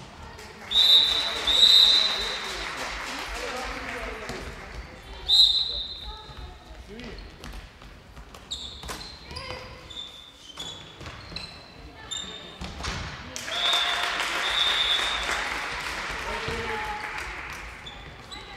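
Sneakers squeak sharply on a hard gym floor in a large echoing hall.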